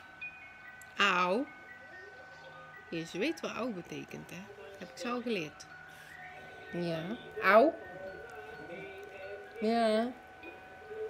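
A woman speaks close by in a playful voice.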